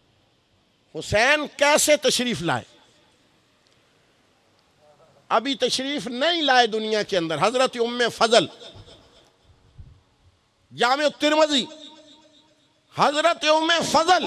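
A middle-aged man speaks with feeling into a microphone, in bursts with pauses, slightly echoing.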